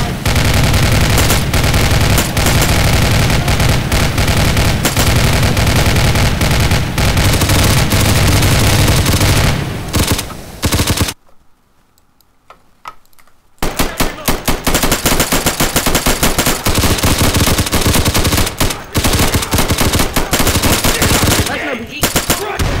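Automatic rifles fire in rapid, loud bursts indoors.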